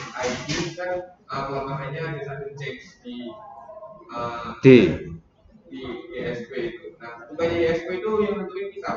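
A man speaks steadily into a close microphone.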